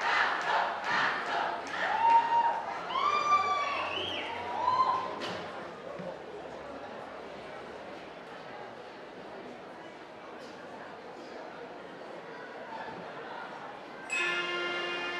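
A brass band plays loud, bright notes outdoors.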